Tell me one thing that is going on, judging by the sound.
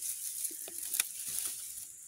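Dry grass rustles as a hand pushes it aside.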